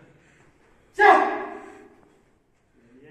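A man shouts out loudly with effort while lifting.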